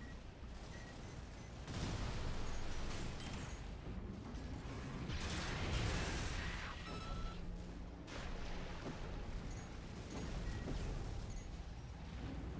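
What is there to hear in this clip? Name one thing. Rapid gunfire bursts and rattles.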